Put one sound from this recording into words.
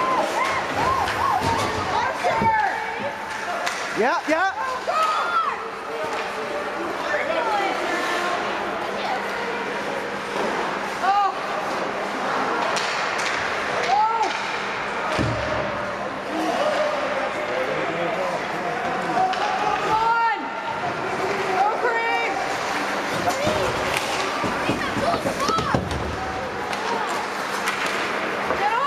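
Hockey sticks clack against the puck and ice.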